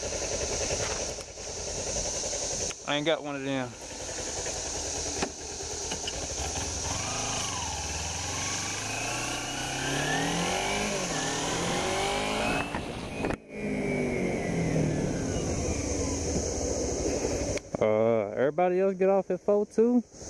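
A motorcycle engine idles and rumbles steadily.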